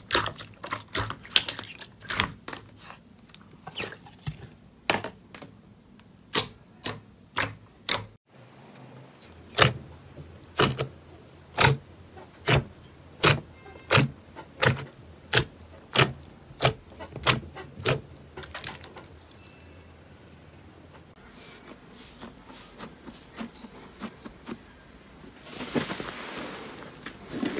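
Fingers press into wet, sticky slime, making squelching pops.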